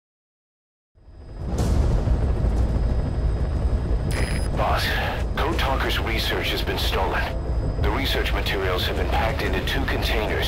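A helicopter engine and rotor drone steadily.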